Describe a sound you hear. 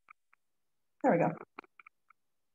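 A phone is picked up and handled with a short rustle.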